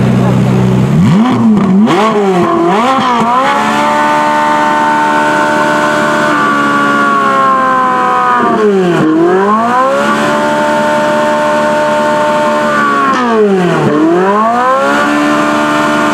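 A sports car engine revs hard, rising and falling in sharp bursts.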